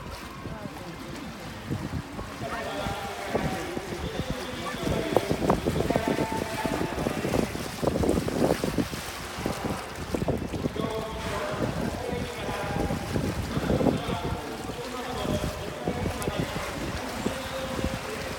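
Water splashes as a large animal surfaces and dives in a pool.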